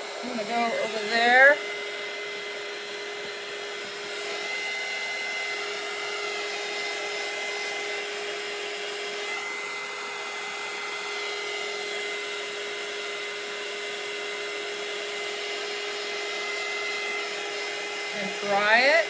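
A heat tool blows with a steady whirring hum.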